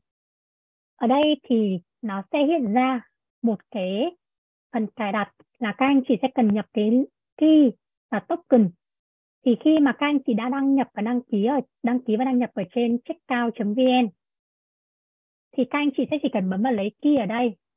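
A young woman talks calmly into a microphone over an online call.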